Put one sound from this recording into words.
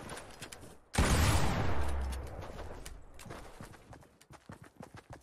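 A heavy explosion booms and rumbles away.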